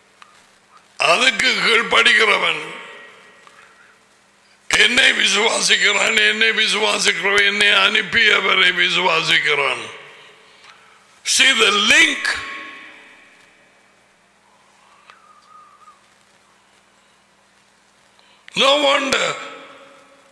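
An elderly man speaks forcefully into a close microphone, in bursts with pauses.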